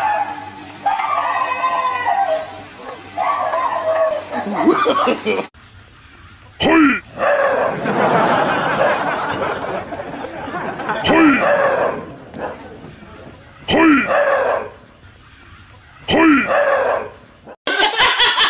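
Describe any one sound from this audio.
Dogs bark and yelp in alarm.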